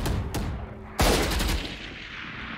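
A rifle fires a few quick shots.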